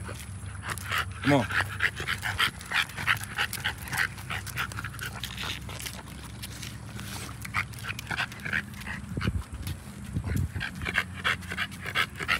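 A dog pants loudly close by.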